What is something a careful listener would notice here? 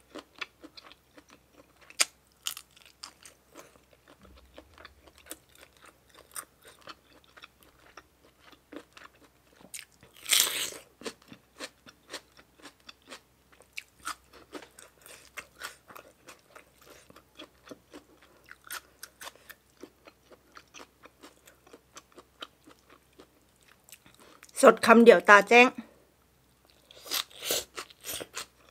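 A woman chews and munches food loudly close to a microphone.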